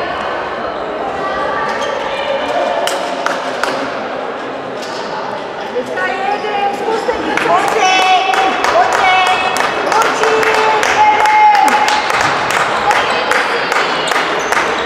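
Young girls call out to each other across the hall.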